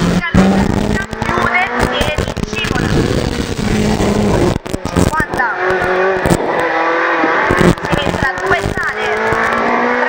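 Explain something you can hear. A rally car engine roars loudly from inside, revving up and down through gear changes.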